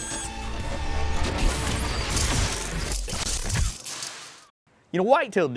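Electric sparks crackle and buzz.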